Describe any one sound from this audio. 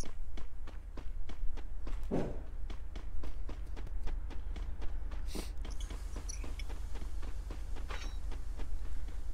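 Running footsteps patter quickly and steadily.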